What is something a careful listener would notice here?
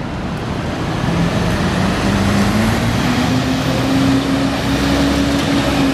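A city bus engine rumbles and rises in pitch as the bus pulls along the street.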